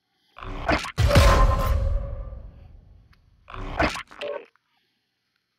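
A game menu whooshes through a transition.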